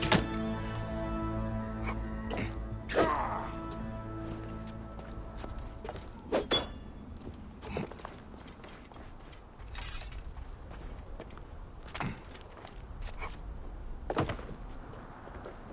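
Footsteps thud and clatter on wooden poles.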